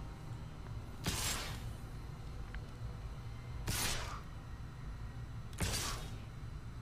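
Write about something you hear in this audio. Game attack effects whoosh three times in quick succession.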